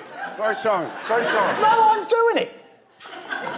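A man laughs loudly and gleefully.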